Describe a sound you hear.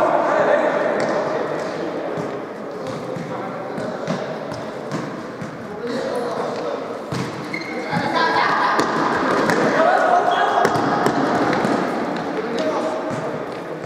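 Men shout to one another across a large echoing hall.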